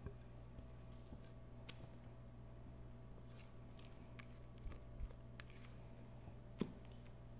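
A spatula scrapes thick batter from a bowl.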